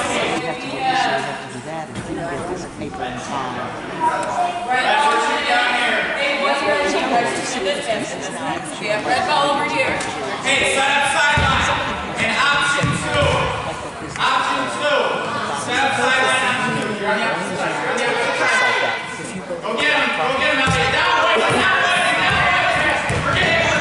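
A man calls out instructions loudly in an echoing hall.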